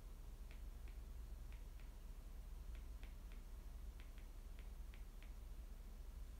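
Fingernails tap lightly on a hard surface in quick little clicks.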